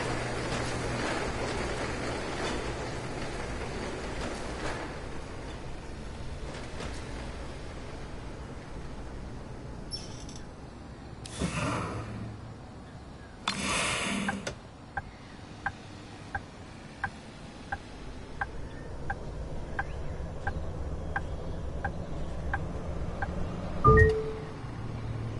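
A bus engine hums steadily at low speed.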